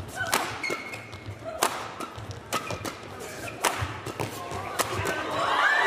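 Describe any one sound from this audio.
Rackets smack a shuttlecock back and forth in a fast rally.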